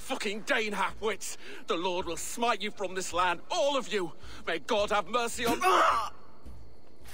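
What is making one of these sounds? A middle-aged man shouts angrily.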